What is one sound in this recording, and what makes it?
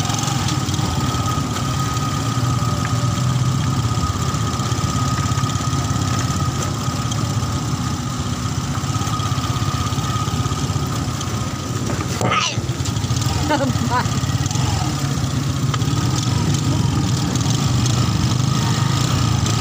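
A motorbike engine hums steadily close by as it rides along.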